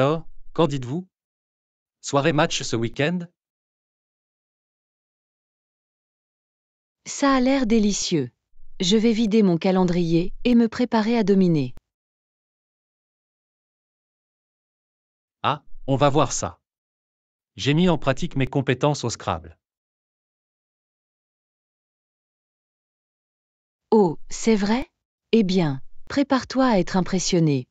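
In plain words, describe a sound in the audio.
A woman speaks with animation, close to the microphone.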